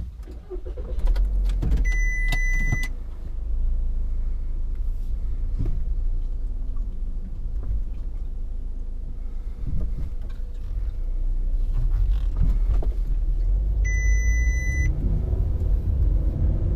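Tyres roll along a road.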